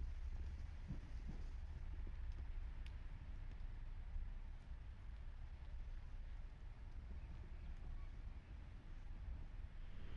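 Footsteps crunch through snow nearby.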